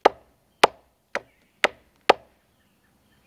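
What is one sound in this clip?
A knife chops sharply at a wooden stick in quick strokes.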